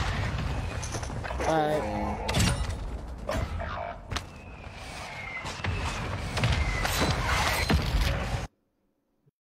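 Gunfire and explosions from a game crackle and boom.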